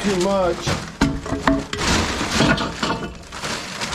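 Wooden boards knock and scrape as a hand shifts them.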